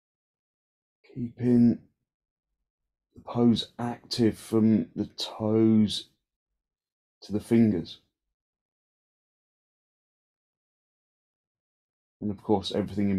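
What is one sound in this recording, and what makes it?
A man speaks calmly nearby, in short bursts with pauses.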